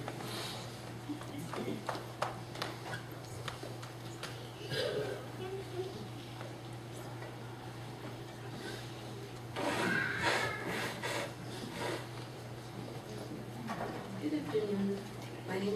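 Audience members murmur softly in a room.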